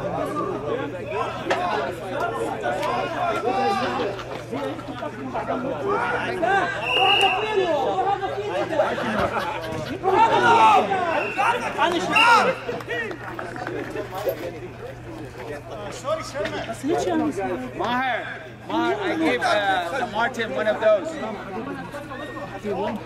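Men nearby talk and call out with animation outdoors.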